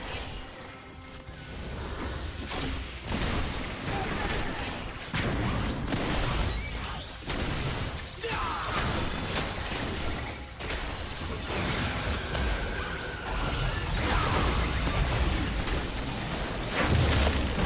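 Game spell effects whoosh and crackle as characters fight.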